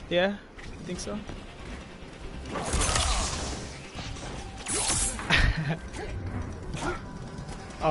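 Heavy blows land with thuds and slashes in a fight.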